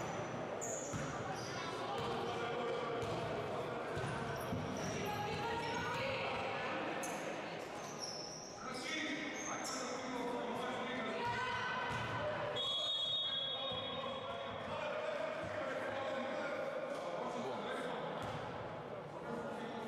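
Young women call out to each other across an echoing hall.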